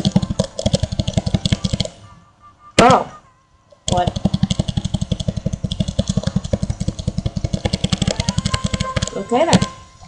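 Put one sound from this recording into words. A video game counter ticks rapidly.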